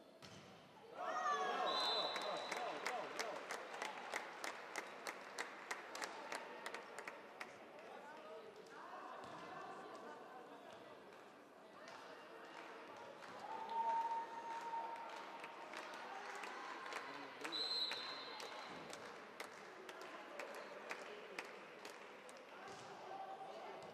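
A crowd claps in quick rhythm in a large echoing hall.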